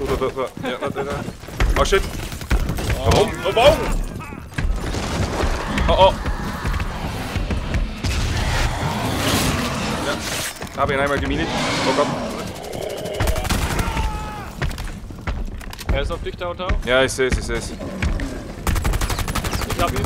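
Gunfire bursts in rapid shots.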